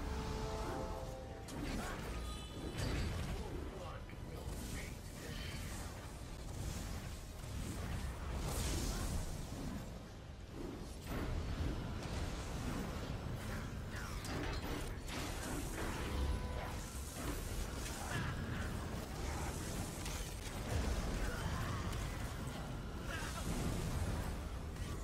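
Magic spells crackle and explode in a game battle.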